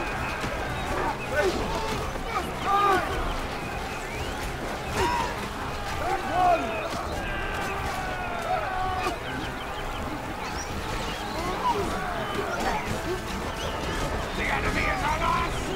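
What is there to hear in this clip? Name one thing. Warriors shout and cry out in battle.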